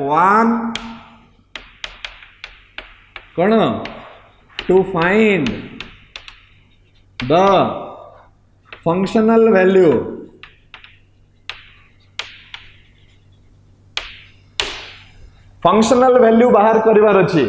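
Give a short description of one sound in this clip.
A man speaks calmly in a slightly echoing room.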